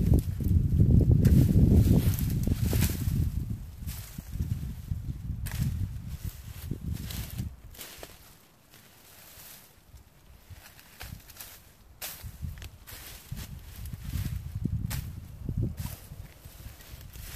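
Pruning shears snip through twigs.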